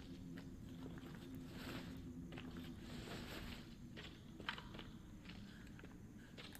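Footsteps crunch slowly over loose stones and gravel.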